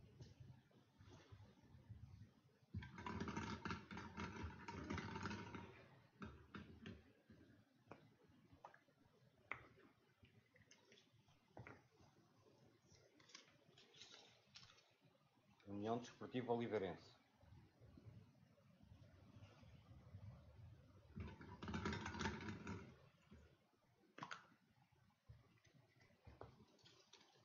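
Plastic balls rattle and clack in a bowl.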